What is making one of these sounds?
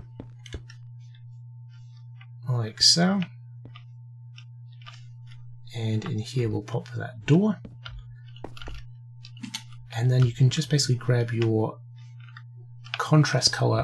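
Blocks are placed with soft, short clicks.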